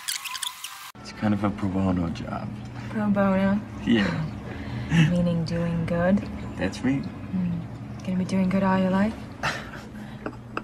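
A young woman talks warmly and laughs softly.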